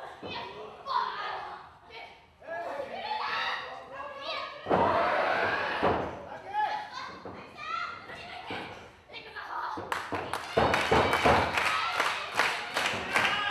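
Young women shout during a wrestling bout.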